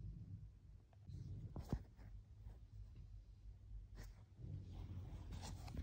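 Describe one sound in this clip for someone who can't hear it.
A finger taps a touchscreen.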